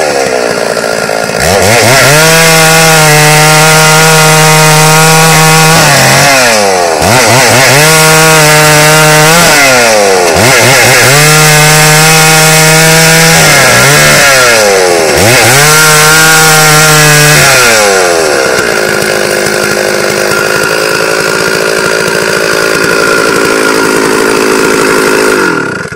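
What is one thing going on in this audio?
A chainsaw engine revs loudly and repeatedly, then settles into a steady roar as it cuts through wood.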